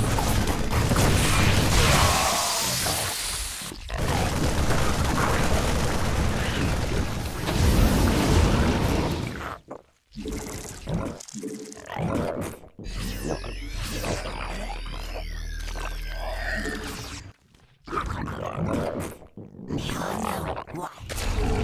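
Gunfire and explosions rattle and boom in a battle.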